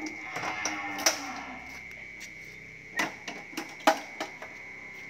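A metal truck door clanks and rattles as it is opened.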